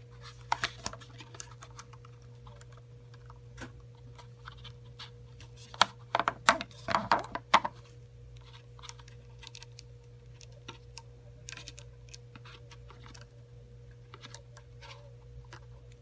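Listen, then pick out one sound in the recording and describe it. Plastic joints of a small figure click and creak as hands pose it.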